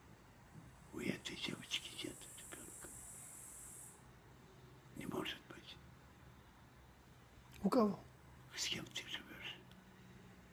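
An elderly man speaks close by in short bursts.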